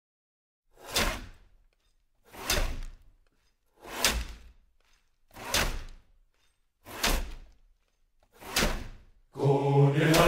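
Ice saws strike and rasp through ice in slow, even strokes.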